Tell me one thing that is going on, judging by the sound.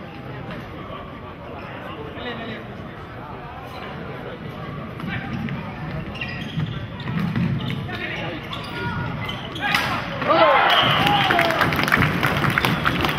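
Plastic sticks click against a ball and each other in an echoing hall.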